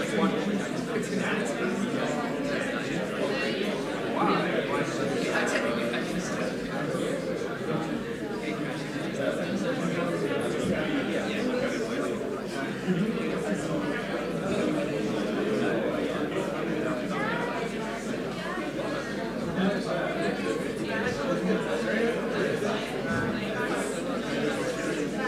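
A large crowd of men and women chatters in an echoing hall.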